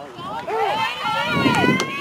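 A man shouts a call loudly outdoors.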